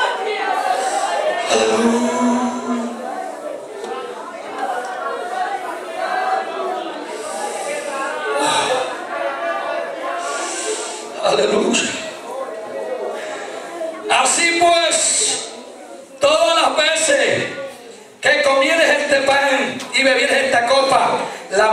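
A congregation of men and women pray aloud together in a large room.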